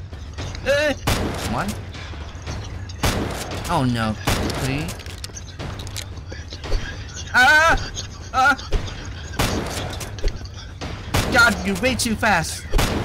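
A shotgun fires loud booming shots again and again.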